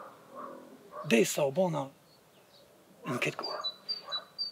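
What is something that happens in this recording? A man speaks softly close by.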